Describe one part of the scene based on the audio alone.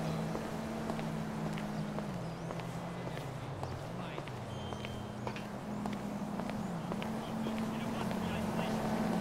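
Footsteps tap on a paved sidewalk at a steady walking pace.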